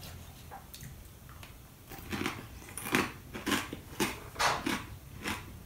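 A young man crunches loudly on a pickle close by.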